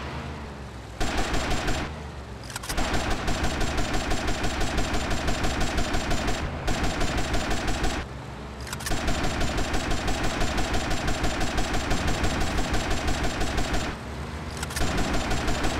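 A speedboat engine roars at high speed.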